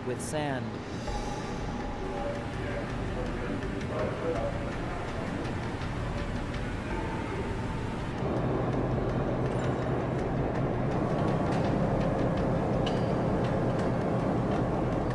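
Heavy machinery rumbles and churns steadily.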